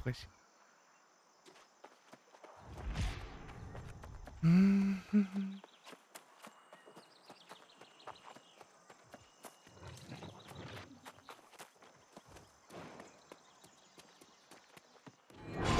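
Footsteps walk over ground.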